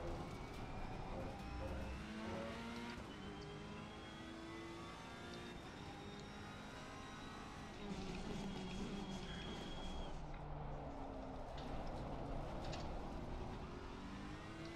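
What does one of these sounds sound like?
A racing car engine revs and shifts gears steadily.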